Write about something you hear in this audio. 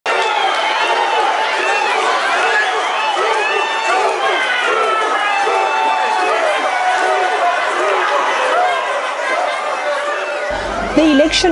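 A large crowd sings and cheers loudly.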